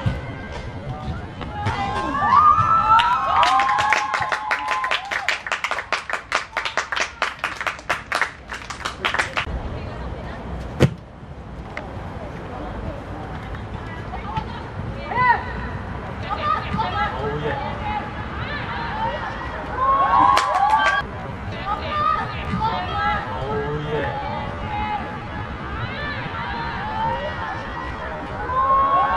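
Young players shout and call out across an outdoor pitch.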